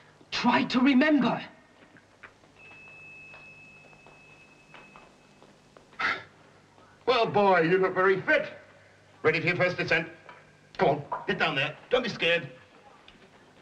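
A middle-aged man speaks with animation nearby.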